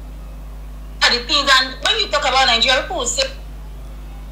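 A young woman speaks with animation close to a microphone, as if on an online call.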